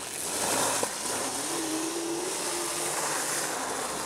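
An electric quad bike's motor hums faintly as it drives off.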